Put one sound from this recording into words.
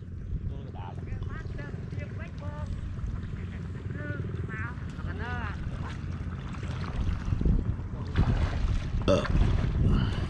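Water splashes as a man wades through a river.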